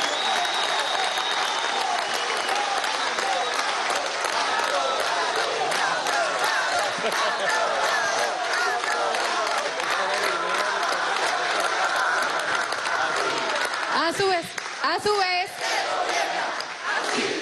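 Many people clap their hands rapidly.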